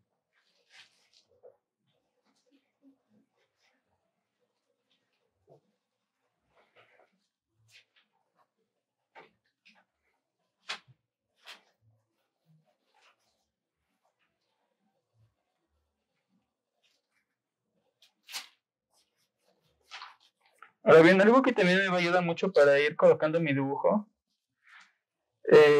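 A pencil scratches and strokes softly across paper.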